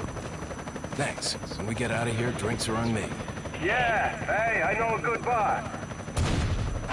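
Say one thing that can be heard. A young man speaks calmly into a radio.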